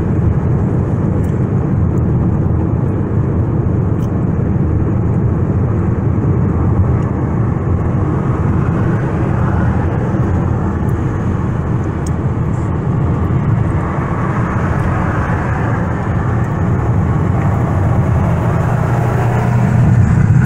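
Tyres roar steadily on the road surface.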